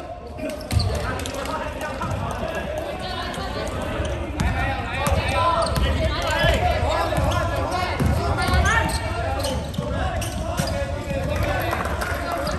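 A basketball bounces with hollow thuds in an echoing hall.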